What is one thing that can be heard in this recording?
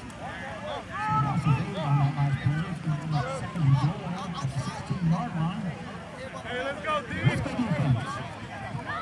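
Football players shout to each other across an open field.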